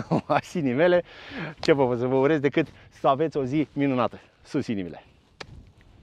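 A middle-aged man speaks with animation into a clip-on microphone outdoors.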